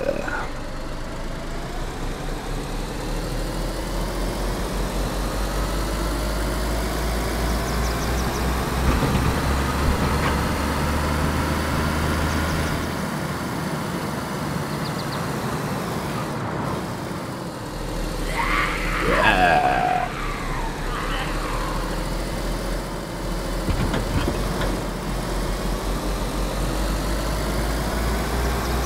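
A car engine hums and revs as the car drives along a road.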